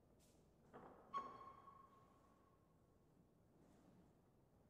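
A piano note rings out and slowly fades.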